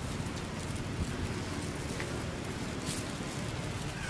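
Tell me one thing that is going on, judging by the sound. Dry leaves rustle as a small monkey handles them.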